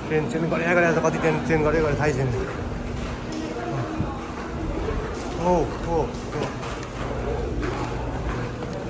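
People talk nearby in a busy, echoing passage.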